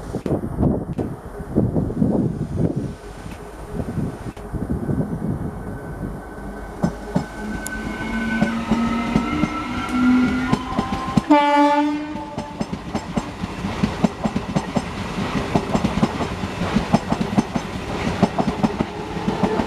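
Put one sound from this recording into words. A train rumbles closer along the tracks and passes close by.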